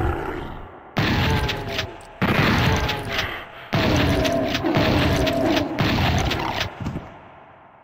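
A shotgun fires loud blasts several times.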